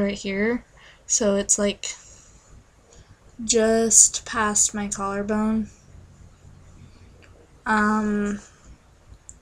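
A young woman sings close to the microphone in short, sustained phrases.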